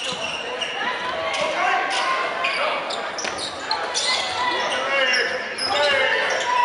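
Spectators and players shout and call out in an echoing gym.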